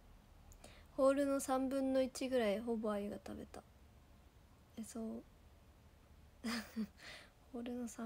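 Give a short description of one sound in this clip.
A young woman speaks close by in an emotional, wavering voice.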